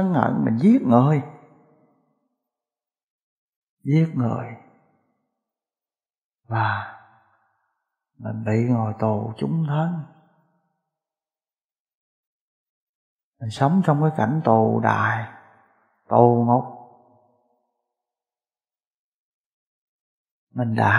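A middle-aged man speaks calmly and slowly into a microphone, with long pauses.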